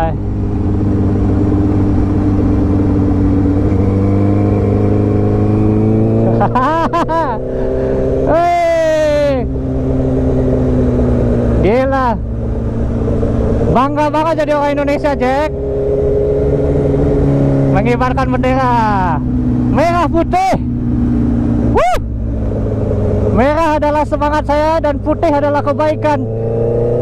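A motorcycle engine roars steadily.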